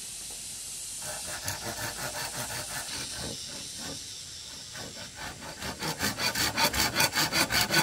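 A hand saw cuts through bamboo with quick rasping strokes.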